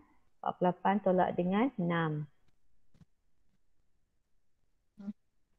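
A woman speaks calmly and clearly into a microphone, heard as if over an online call.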